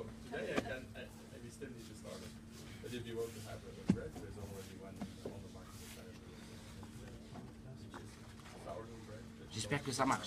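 Dough is pressed and kneaded on a floury counter.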